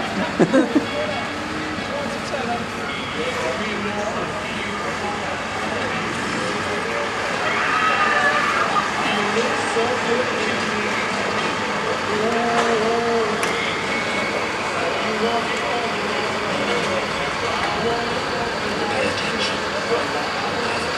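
A crowd of men and women talk at once outdoors.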